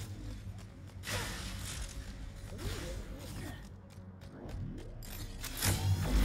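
Blasts and explosions go off.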